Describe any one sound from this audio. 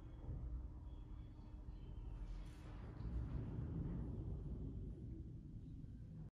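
A piano plays in a large, echoing hall.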